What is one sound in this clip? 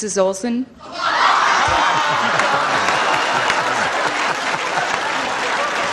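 An older man laughs heartily.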